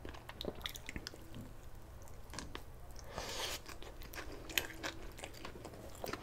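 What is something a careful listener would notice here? A man sucks his fingers with a smacking sound.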